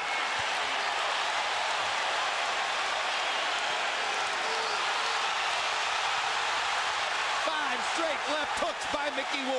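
Boxing gloves thump against a body.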